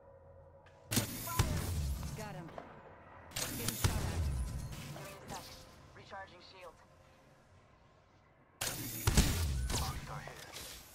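A video game charge rifle fires heavy beam blasts.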